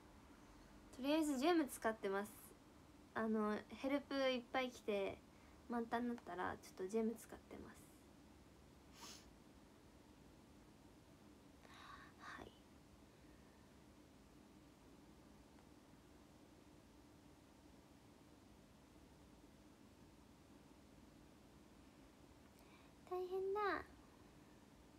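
A young woman talks softly and casually, close by.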